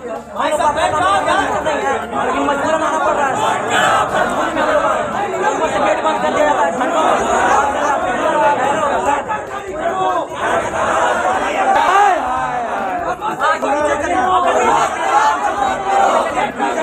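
A young man shouts forcefully over the crowd.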